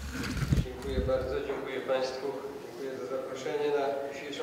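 An older man speaks calmly into a microphone in an echoing hall.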